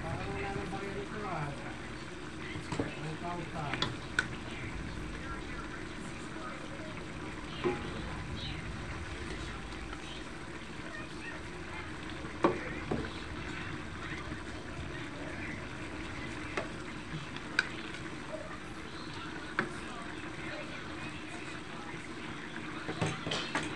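Food sizzles and simmers in a metal wok.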